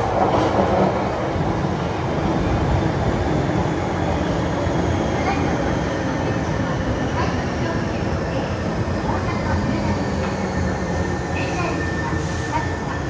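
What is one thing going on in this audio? Train brakes squeal as the train slows along the platform.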